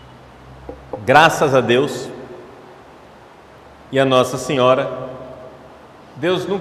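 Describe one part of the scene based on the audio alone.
A man speaks slowly and calmly into a microphone in an echoing hall.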